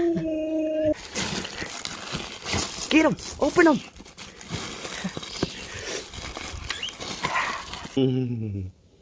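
A dog tears at a crinkling plastic bag.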